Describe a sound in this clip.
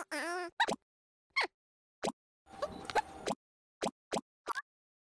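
Short game sound effects chime and whoosh.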